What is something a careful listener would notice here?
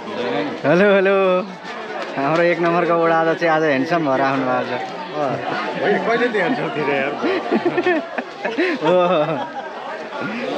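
A man speaks cheerfully and close by, with a microphone.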